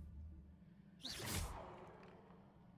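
A magic spell whooshes from a wand.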